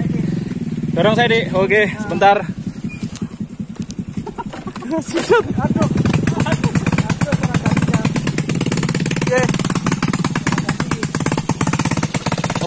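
A motorbike engine putters steadily as it rides along.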